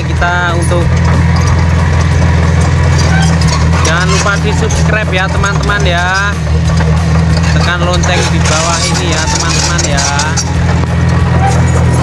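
Steel crawler tracks squeal and clank as a bulldozer moves.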